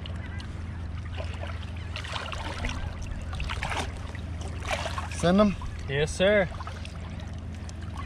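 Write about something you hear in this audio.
Water splashes and laps around a large fish.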